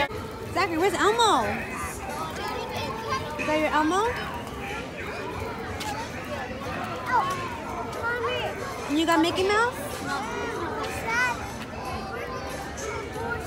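A young child talks and squeals close by.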